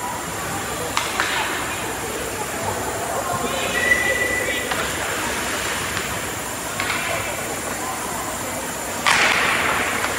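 A hockey puck cracks against sticks and boards.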